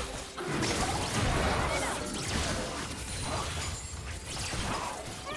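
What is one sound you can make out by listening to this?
Game spell effects whoosh and crackle in a busy fight.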